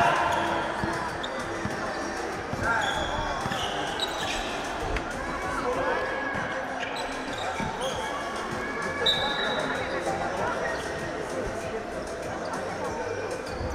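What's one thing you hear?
Spectators chatter in a large echoing hall.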